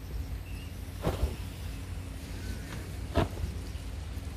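A sleeping pad flaps and thumps as it is shaken out.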